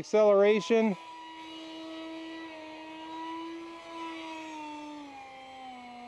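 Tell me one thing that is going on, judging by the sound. A small drone hums steadily in the sky overhead, its pitch slowly falling.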